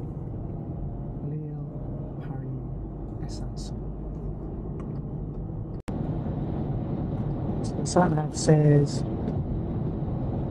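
A car engine hums steadily with road noise from inside the cabin.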